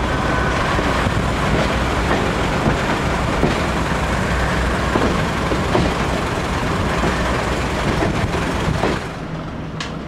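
A train rumbles loudly along the track.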